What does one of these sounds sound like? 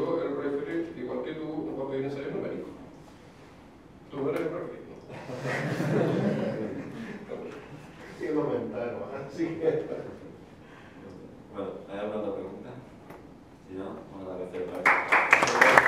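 A middle-aged man speaks with animation in a room with some echo.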